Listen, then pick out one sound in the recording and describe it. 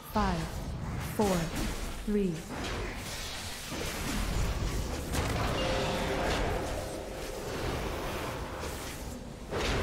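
Magic spells whoosh, crackle and boom in a fight.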